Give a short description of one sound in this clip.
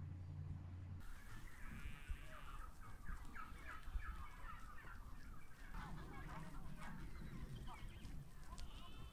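Sheep tear and chew grass close by.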